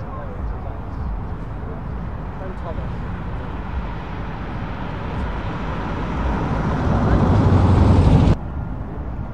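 An old van engine rumbles as the van approaches and passes close by.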